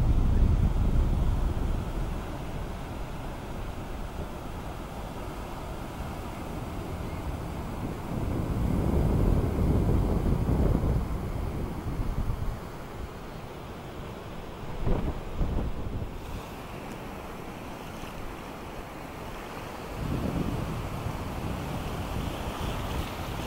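Waves break and wash up on a shore.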